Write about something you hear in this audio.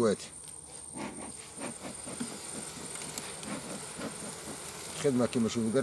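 A bee smoker's bellows puff softly several times.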